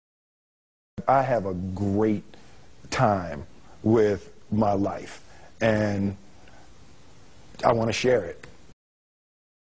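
A man speaks calmly and thoughtfully, close to a microphone.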